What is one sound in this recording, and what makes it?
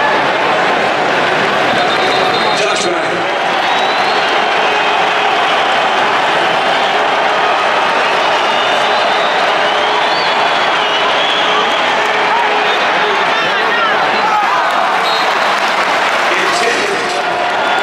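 A large stadium crowd roars and cheers loudly all around.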